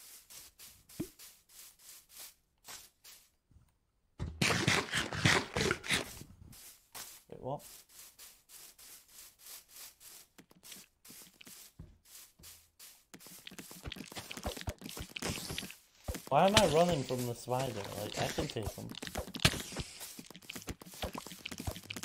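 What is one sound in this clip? Footsteps crunch steadily on grass.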